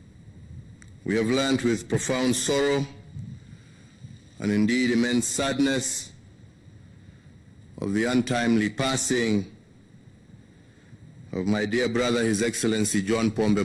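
A man speaks slowly and solemnly into a microphone.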